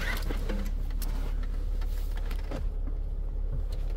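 A car seat folds down with a soft thud.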